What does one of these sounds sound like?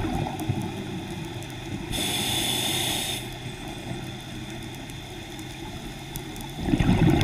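Water rumbles in a low, muffled underwater hush.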